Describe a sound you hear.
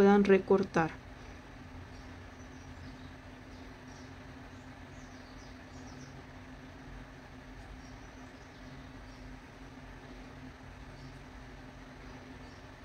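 A crochet hook softly rubs and clicks through yarn.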